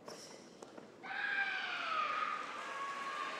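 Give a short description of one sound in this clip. A young woman lets out a loud, sharp shout in a large echoing hall.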